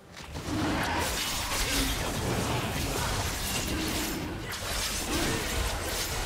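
Game spells whoosh and crackle in a busy fantasy battle.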